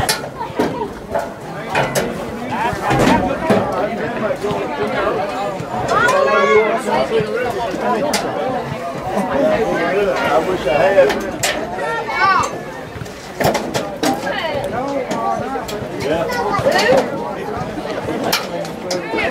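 Spectators shout and cheer outdoors at a distance.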